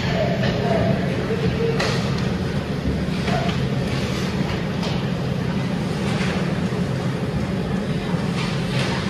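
Ice skates scrape and carve across the ice in a large echoing rink.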